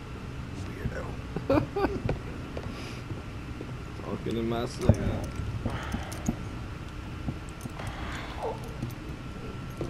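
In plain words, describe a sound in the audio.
A young man speaks calmly up close.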